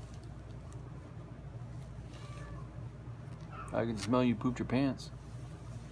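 A blanket rustles softly.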